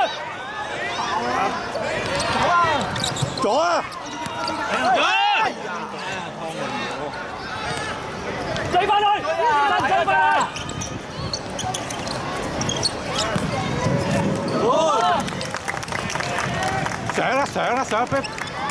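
Young players shout to each other.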